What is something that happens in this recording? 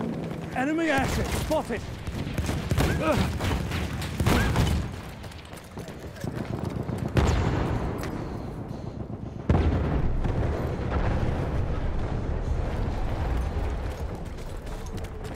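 A submachine gun fires in rapid bursts.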